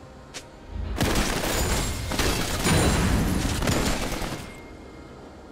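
Magic blasts burst and crackle in a loud fight.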